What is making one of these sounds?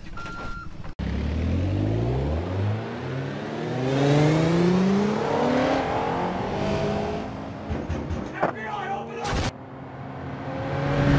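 A car engine revs, rising in pitch as it speeds up.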